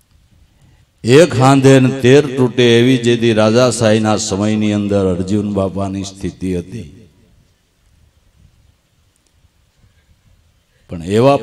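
An older man sings into a microphone in long, held phrases.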